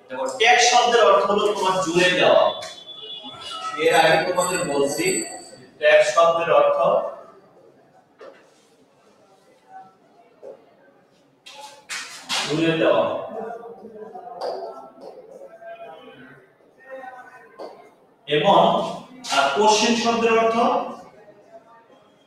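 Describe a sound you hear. A man speaks calmly and clearly, explaining to a class, close by.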